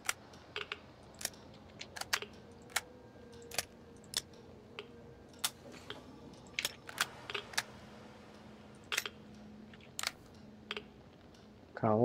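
Short metallic clicks sound as gun parts snap into place.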